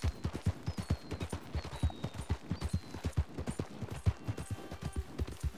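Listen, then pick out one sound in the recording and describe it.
Horse hooves thud rapidly on a dirt path at a gallop.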